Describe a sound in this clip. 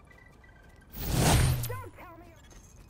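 A loud whooshing rush swells and fades.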